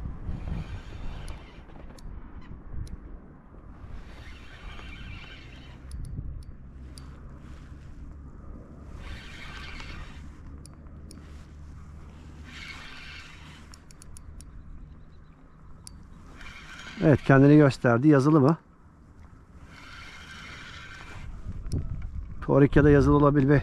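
Wind rumbles across an open microphone outdoors.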